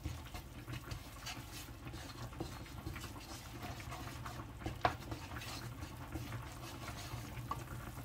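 A paste sizzles gently in a hot pan.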